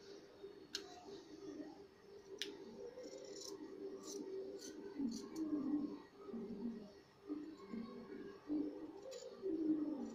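Scissors snip through fabric.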